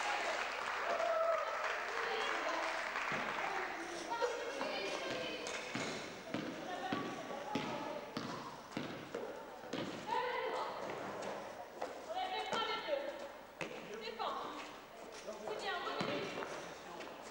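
A basketball bounces with hollow thuds.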